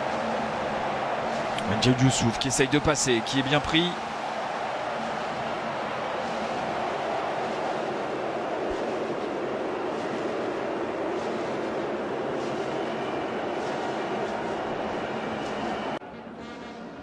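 A crowd in a stadium roars.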